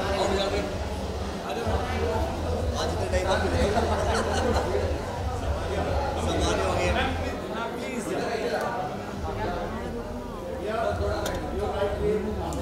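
A crowd of men and women chatter and call out loudly nearby.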